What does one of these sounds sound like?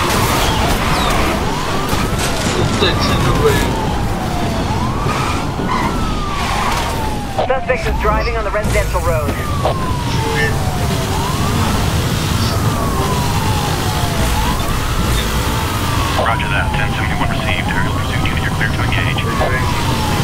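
A police siren wails, rising and falling.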